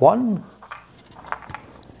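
A small wooden piece is set down on a table with a light knock.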